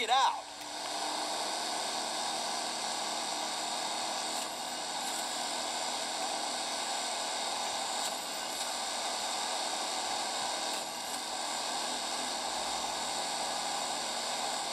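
A game speedboat engine roars steadily over rushing water spray.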